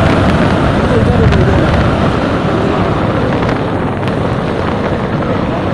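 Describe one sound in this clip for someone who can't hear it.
Wind and road noise rumble from a moving vehicle.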